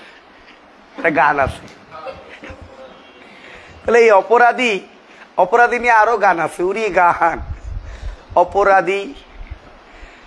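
A middle-aged man speaks loudly and with animation close by.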